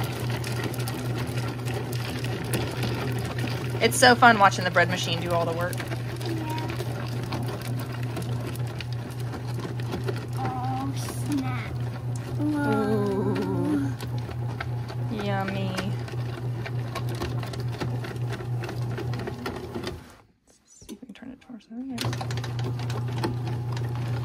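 A bread machine motor hums steadily as it kneads dough.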